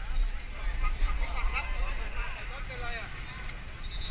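Men and women chatter nearby in a crowd.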